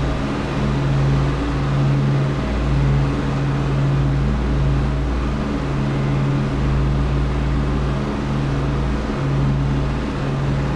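Aircraft engines drone steadily, heard from inside the cabin.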